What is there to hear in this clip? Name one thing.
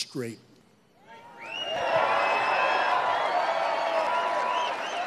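A large outdoor crowd cheers and whistles loudly.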